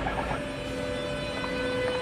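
An electric locomotive rolls into the station.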